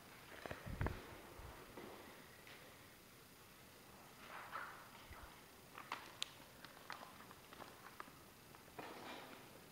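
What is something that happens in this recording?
A flag's cloth rustles softly as it is handled and folded.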